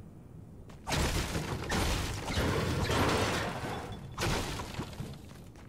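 A pickaxe strikes metal lockers with sharp clangs.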